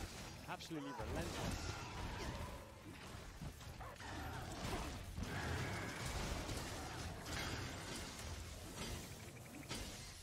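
A large beast roars.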